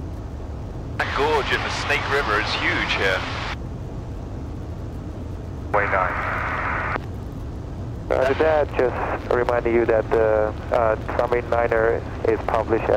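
A man talks calmly over an aircraft intercom.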